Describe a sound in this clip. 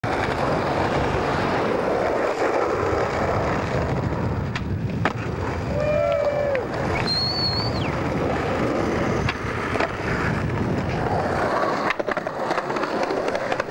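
Skateboard wheels roll and clatter on pavement.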